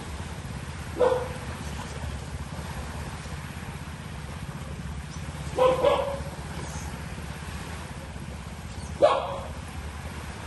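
Seabirds call now and then overhead.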